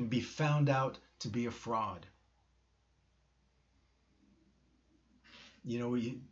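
A middle-aged man speaks calmly and close to a microphone, with pauses.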